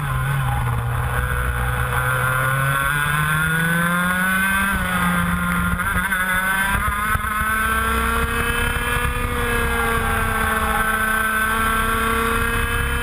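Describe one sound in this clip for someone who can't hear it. A small kart engine buzzes loudly close by, revving up and down through the corners.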